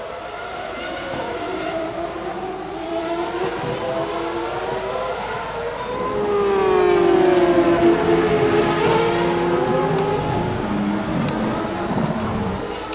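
Racing car engines whine steadily, rising and falling in pitch as the cars pass.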